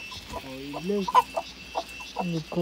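A hen flaps its wings as it flutters down.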